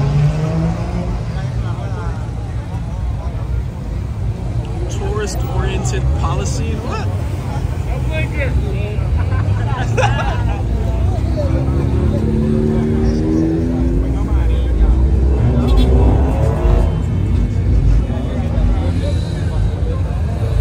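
Car engines rumble and rev as cars drive slowly past.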